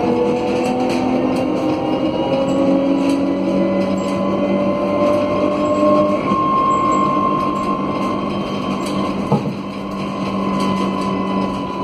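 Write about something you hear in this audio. An engine hums and whines steadily from inside a moving vehicle.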